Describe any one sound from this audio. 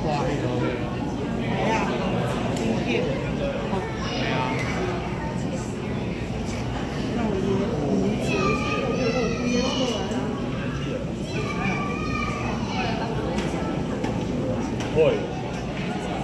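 Water churns and bubbles as penguins swim, heard underwater.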